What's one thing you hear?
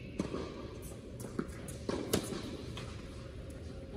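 A tennis ball pops off racquet strings in a large echoing hall.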